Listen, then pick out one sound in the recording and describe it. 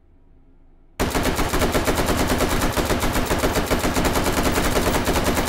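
A rifle fires in a rapid, loud automatic stream.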